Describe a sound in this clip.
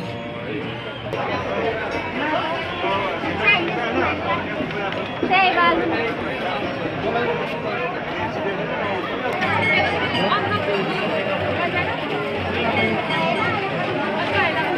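A crowd of men and women chatter and call out all around, outdoors.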